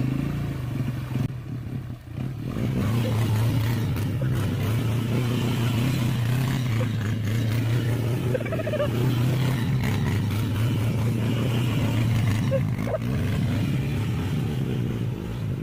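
Tyres churn through mud and gravel.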